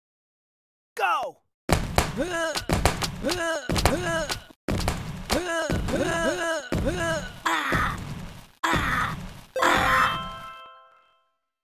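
Cartoon fight sound effects pop and thump in quick succession.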